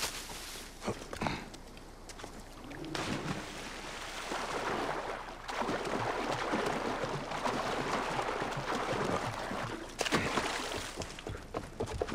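Water splashes as a figure wades and swims.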